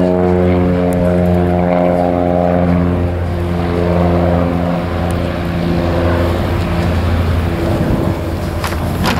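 A single-engine propeller light aircraft drones as it climbs past.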